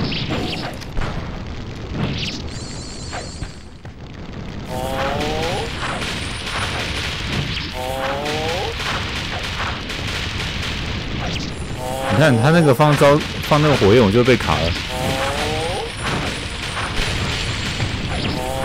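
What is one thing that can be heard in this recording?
Fiery spells crackle and burst.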